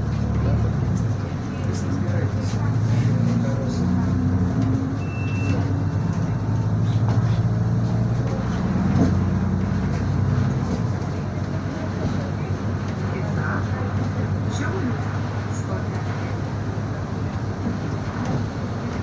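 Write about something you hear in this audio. Windshield wipers swish back and forth across the glass.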